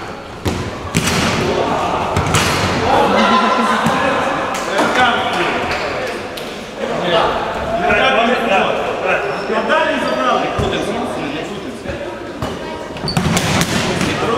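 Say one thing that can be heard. A ball is kicked with a sharp thud.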